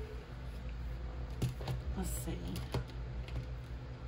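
A small wooden box knocks onto a table.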